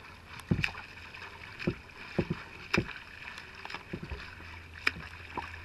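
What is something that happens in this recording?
A swimmer splashes through the water nearby.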